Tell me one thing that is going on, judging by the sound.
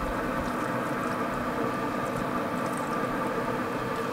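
Liquid pours from a jar onto meat in a foil pan.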